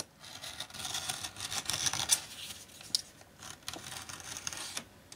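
Pieces of leather rustle and slide across a table under hands.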